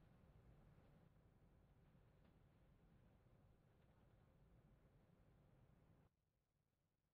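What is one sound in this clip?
A jet engine idles nearby with a low, steady rumble.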